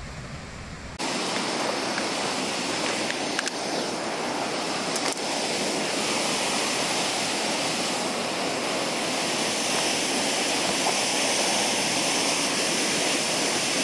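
A waterfall roars steadily into a pool.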